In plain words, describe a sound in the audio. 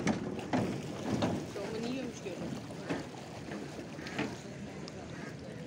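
Small waves lap and splash gently against the shore.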